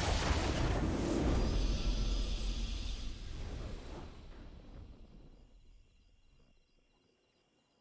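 A triumphant game fanfare swells and slowly fades away.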